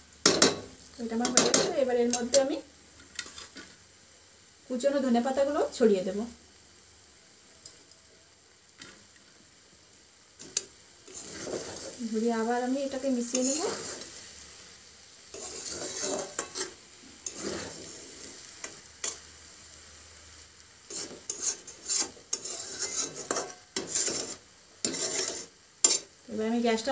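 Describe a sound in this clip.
A metal spatula scrapes and clatters against a metal pan.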